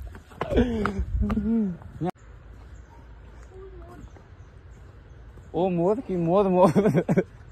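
Footsteps tread on a paved path outdoors.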